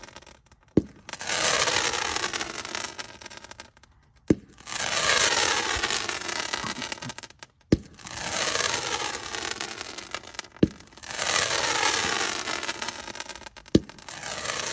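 Firework rockets launch with sharp thumps, one after another.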